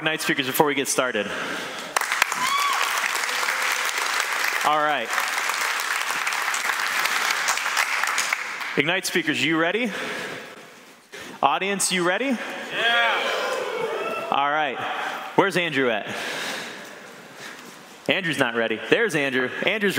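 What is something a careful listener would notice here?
A man speaks with animation to an audience in a large room, heard through a microphone.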